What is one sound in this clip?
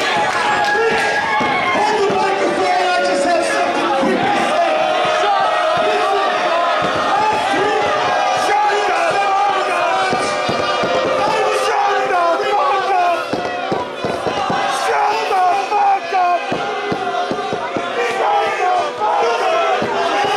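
A crowd chatters and cheers.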